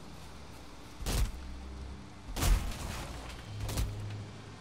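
An axe chops into wood with heavy thuds.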